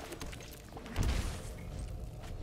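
A deep game sound effect booms as a card is played.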